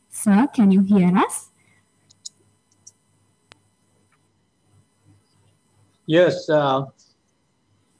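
A woman speaks briefly through an online call.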